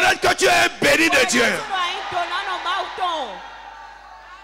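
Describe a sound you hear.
A man sings loudly and passionately into a microphone over loudspeakers, in a large echoing hall.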